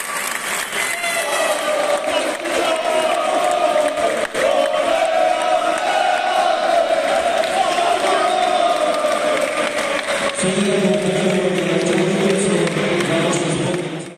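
A group of young men sing and chant loudly together.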